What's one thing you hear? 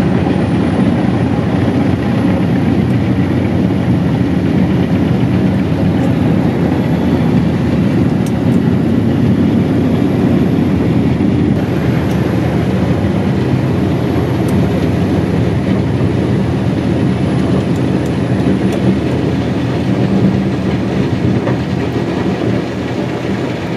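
A heavy machine engine rumbles steadily, muffled through a closed cab.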